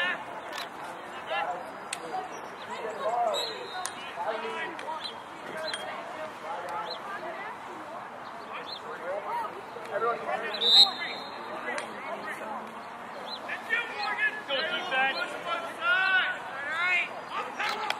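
Boys shout to each other across an outdoor field.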